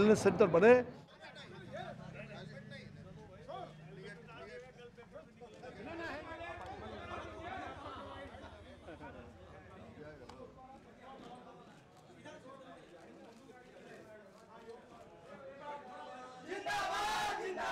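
A crowd of men chatters and murmurs around.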